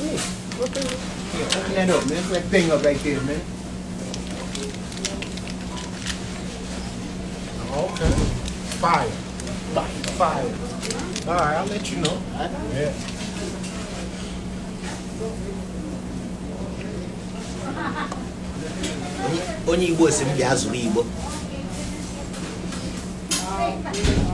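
A man talks with animation close to a phone microphone.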